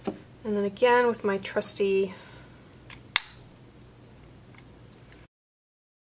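A corner punch clicks as it cuts card.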